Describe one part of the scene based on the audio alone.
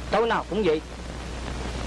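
A man calls out briefly nearby.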